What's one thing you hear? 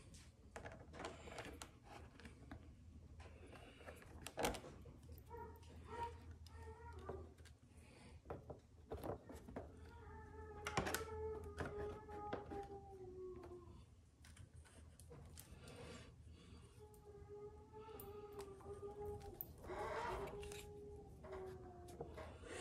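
Hard plastic parts click and knock as they are handled close by.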